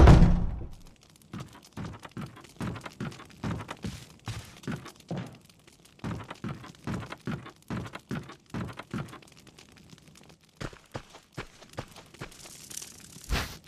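Footsteps thud steadily on creaky wooden boards.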